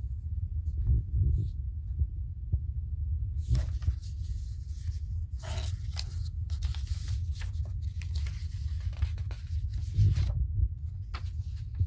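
Sheets of paper rustle and flap as they are handled.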